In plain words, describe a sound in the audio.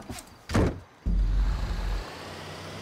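A truck engine rumbles low.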